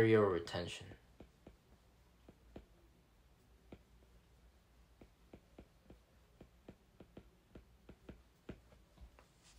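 A stylus taps and scrapes on a tablet.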